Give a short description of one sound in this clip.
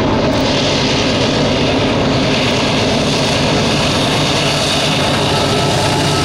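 Diesel locomotives rumble and roar steadily as a freight train approaches.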